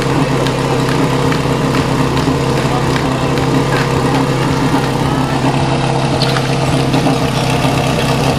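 A motor pump engine runs with a loud steady drone.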